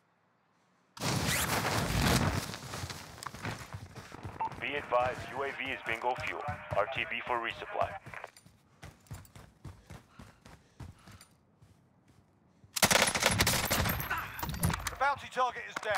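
Gunshots fire in rapid bursts.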